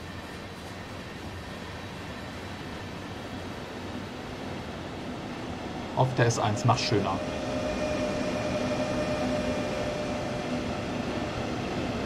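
An electric train rolls in with a growing rumble and a steady whine.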